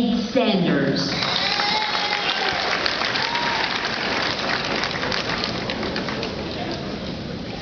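An audience cheers and claps.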